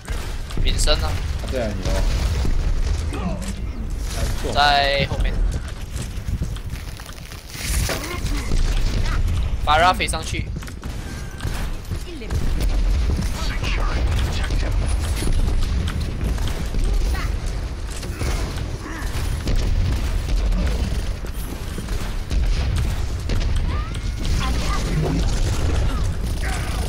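A heavy gun fires rapid bursts with deep thumps.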